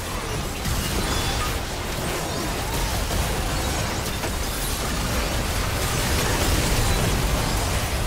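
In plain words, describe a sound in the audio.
Magic spells blast and crackle in a chaotic game fight.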